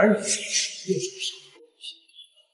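A young man speaks with a challenging tone.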